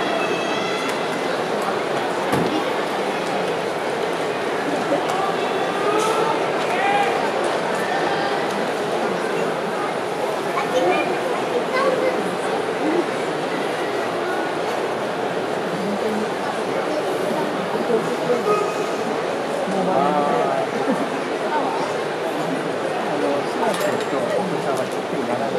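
A large indoor crowd murmurs and chatters steadily.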